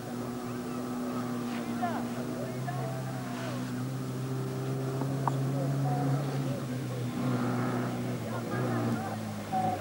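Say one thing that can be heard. A rally car engine drones and revs nearby, rising and falling.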